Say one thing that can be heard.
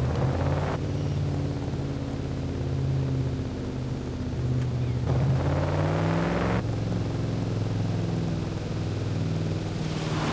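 A sports car engine roars steadily, its pitch shifting as it changes gear.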